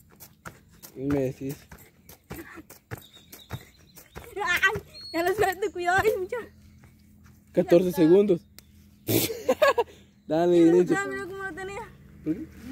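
A boy laughs close by.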